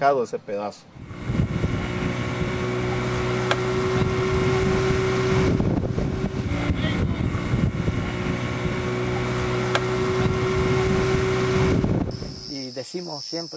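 A boat's outboard motor drones steadily over rushing water.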